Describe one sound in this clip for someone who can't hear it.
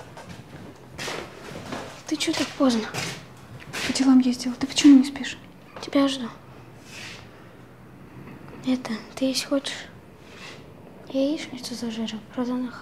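A young girl speaks with feeling, close by.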